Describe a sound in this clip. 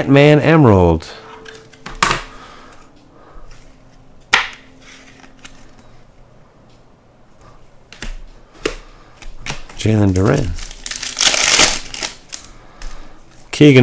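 A plastic card sleeve rustles and crinkles in hands.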